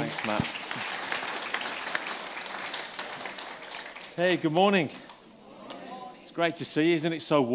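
A man speaks to an audience.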